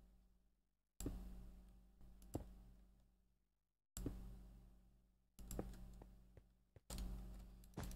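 Stone blocks are placed with soft, dull thuds.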